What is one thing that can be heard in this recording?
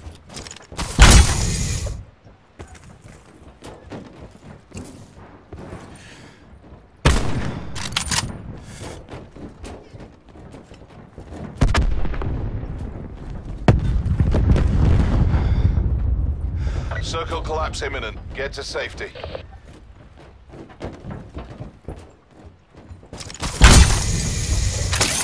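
A body lands with a heavy metal thump.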